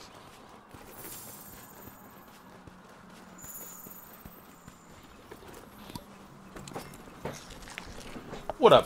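Footsteps patter quickly on rocky ground.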